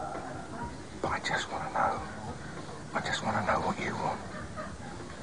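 A middle-aged man speaks calmly and earnestly, close by.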